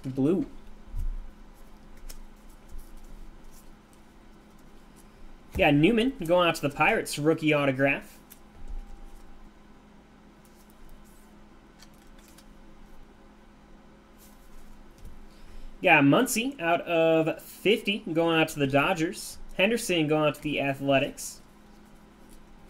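Gloved hands shuffle and slide trading cards.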